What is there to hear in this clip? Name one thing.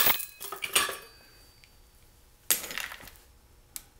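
A metal chain rattles.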